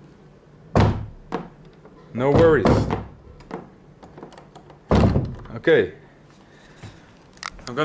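A wooden door thuds and creaks as it is pushed open.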